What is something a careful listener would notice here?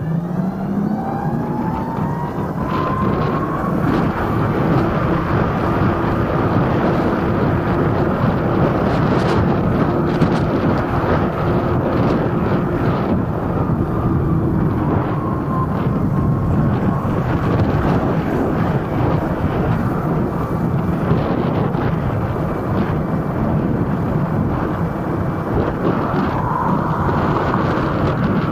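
An electric scooter motor whines, rising and falling in pitch with speed.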